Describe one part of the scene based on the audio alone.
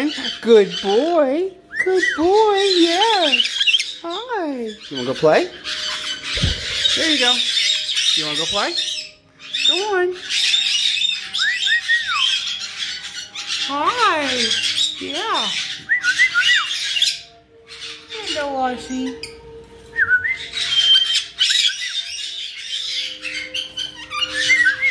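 A parrot whistles in short rising and falling calls, close by.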